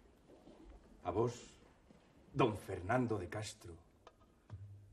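An elderly man speaks firmly.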